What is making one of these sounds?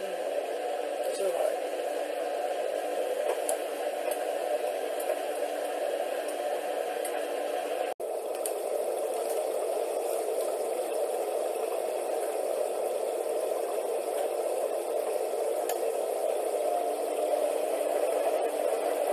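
A washing machine drum turns with a steady hum.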